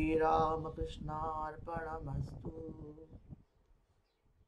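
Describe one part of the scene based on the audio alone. A man chants in a steady, sung voice close to a microphone.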